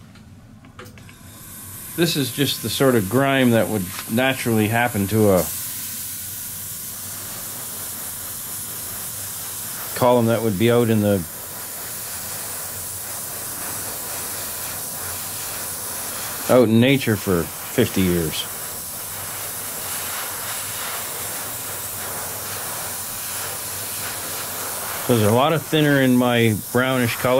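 An airbrush hisses steadily.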